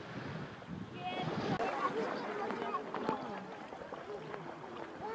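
Water splashes as a dog wades through shallow waves.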